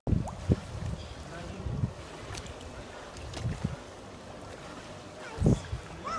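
Water splashes softly as children swim in a pool.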